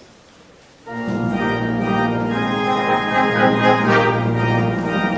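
A brass ensemble of trumpets and trombones plays a loud, full chord.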